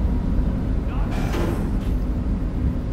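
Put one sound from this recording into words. A sliding metal door whooshes open.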